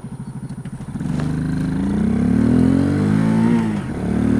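A motorcycle engine revs up and rises in pitch as it accelerates.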